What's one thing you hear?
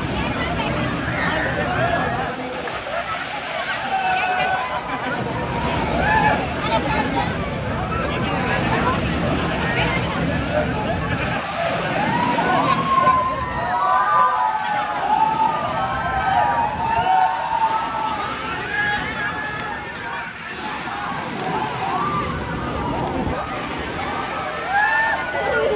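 Children and adults shout and laugh all around in a noisy crowd.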